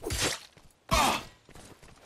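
An arrow thuds into an enemy.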